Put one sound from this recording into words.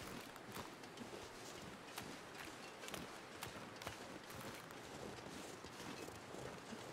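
Footsteps crunch steadily across snow.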